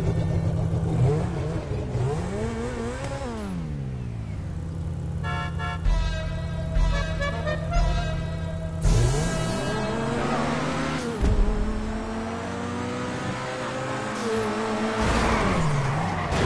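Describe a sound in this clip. A car engine revs loudly, rising and falling in pitch.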